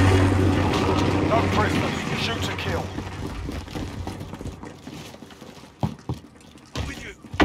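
Heavy footsteps thud quickly on a hard floor.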